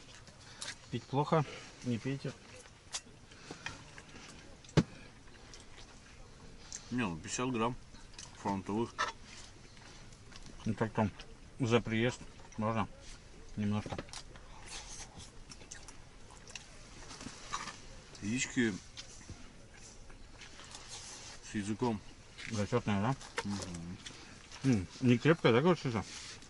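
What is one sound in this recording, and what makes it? Men talk calmly and close by, in short bursts.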